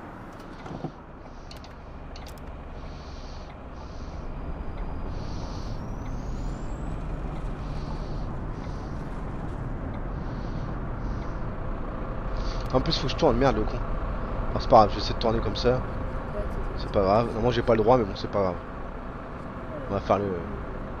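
A bus engine rumbles low and steadily, growing louder as the bus picks up speed.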